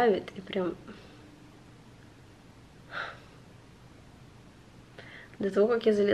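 A young woman speaks softly and close by, with pauses.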